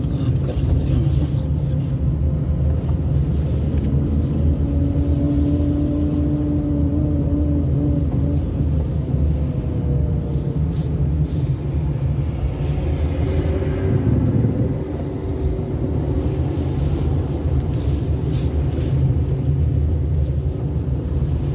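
Tyres roll along the road.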